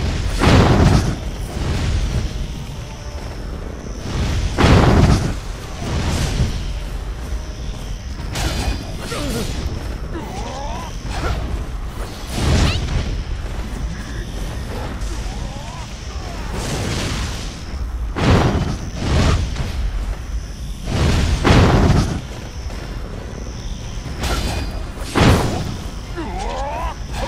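Blades clash and slash in quick strikes.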